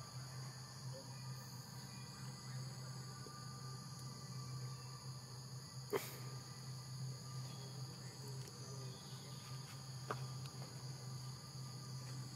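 A baby monkey chews and gnaws on a plastic stick.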